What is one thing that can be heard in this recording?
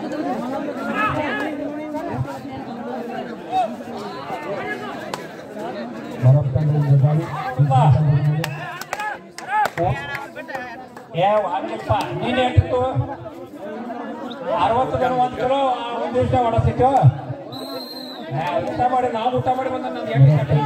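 Men shout excitedly close by.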